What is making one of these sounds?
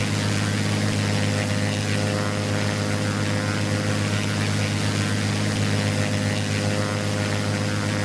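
A small propeller plane's engine drones steadily in flight.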